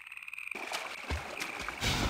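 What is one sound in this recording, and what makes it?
Water splashes as someone wades through it.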